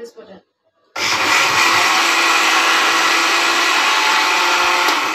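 A blender whirs loudly at high speed.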